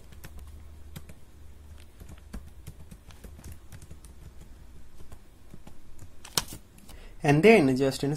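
Keys on a keyboard click quickly.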